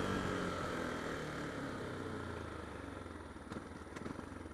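A single-cylinder 125cc supermoto engine winds down as the motorcycle slows.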